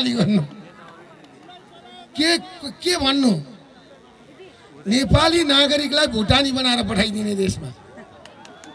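A middle-aged man speaks forcefully into a microphone over a loudspeaker, outdoors.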